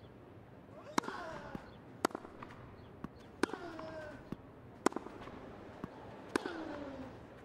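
A tennis racket hits a ball back and forth.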